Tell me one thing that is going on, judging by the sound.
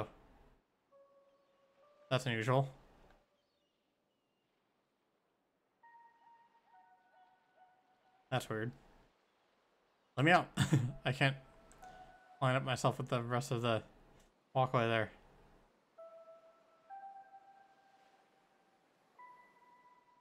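Soft electronic tones chime in short melodic notes.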